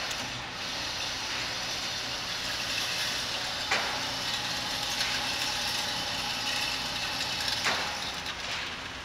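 A motorized target carrier whirs along its track.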